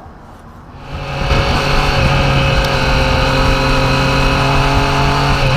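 Wind rushes loudly past a moving rider.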